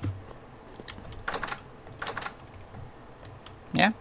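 A wooden door swings open with a creak.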